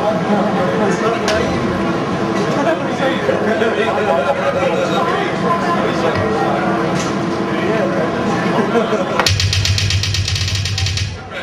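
A loud band plays heavy, distorted guitars and pounding drums.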